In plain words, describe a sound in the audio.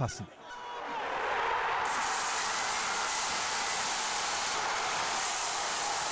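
A large crowd cheers and roars loudly, building quickly to a steady din.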